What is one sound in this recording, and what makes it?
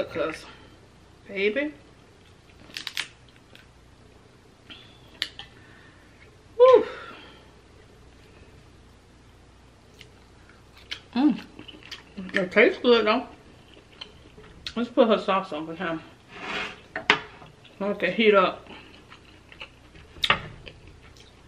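Crab shells crack and snap between fingers.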